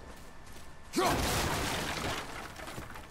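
Wooden planks smash and splinter.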